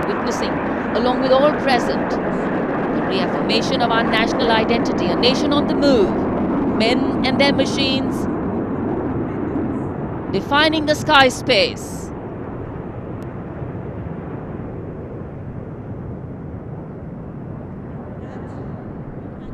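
An aircraft engine drones steadily from inside a cockpit.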